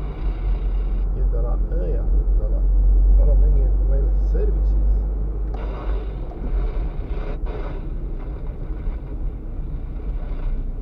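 A car's engine hums steadily from inside as it drives along a road.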